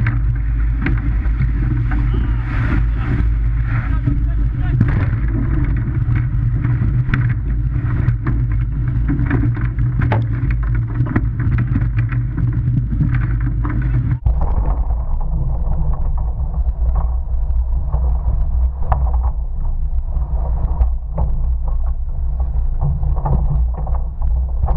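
Surf crashes and splashes around a rowing boat.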